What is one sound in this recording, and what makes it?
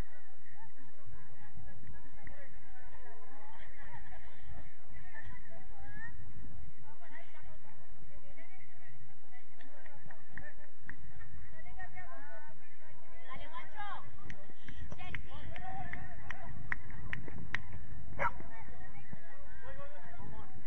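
Young players shout and call out across an open outdoor pitch.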